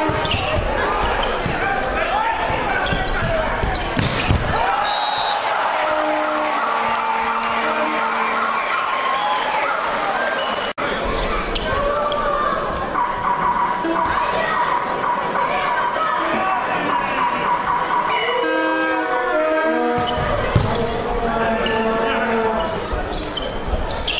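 Players shout to each other across the court.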